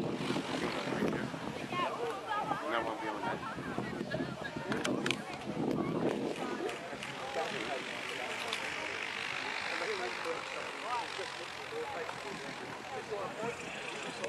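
A single-engine propeller light aircraft approaches and comes in to land.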